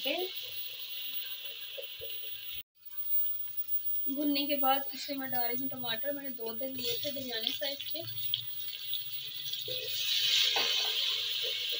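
Food sizzles in hot oil in a pot.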